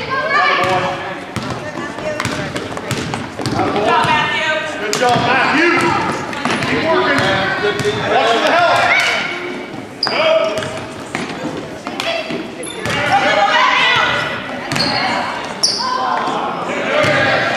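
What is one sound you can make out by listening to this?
A ball bounces on a wooden floor in a large echoing gym.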